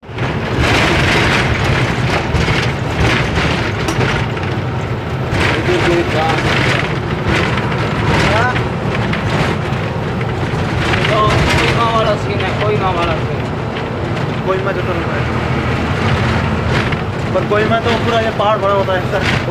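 Wind rushes past an open window.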